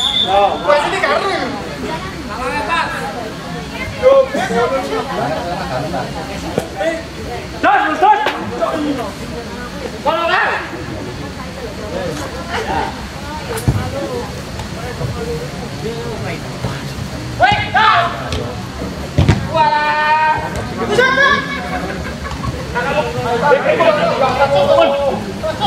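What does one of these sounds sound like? Men shout and call out across an open playing field.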